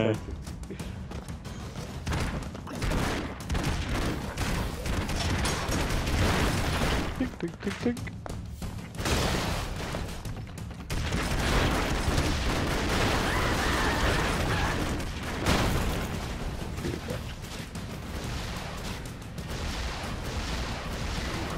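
Rapid gunfire rattles and pops.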